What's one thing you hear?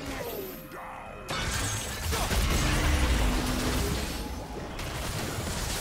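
Spell effects whoosh and crackle in a fight.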